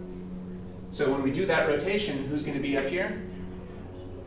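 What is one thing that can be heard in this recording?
A man speaks calmly in a lecture, heard through a microphone.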